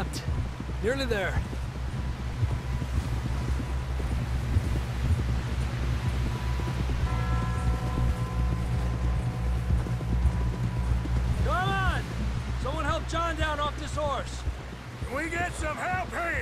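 A man speaks and calls out loudly nearby.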